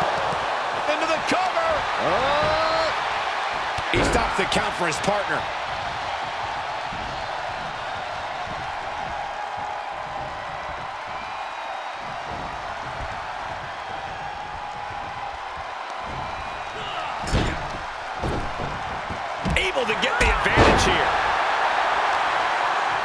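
A large crowd cheers and roars steadily in an echoing arena.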